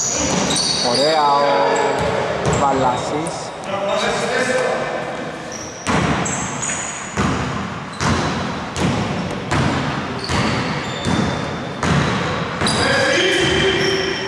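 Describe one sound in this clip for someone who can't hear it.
Men shout to each other across the echoing hall.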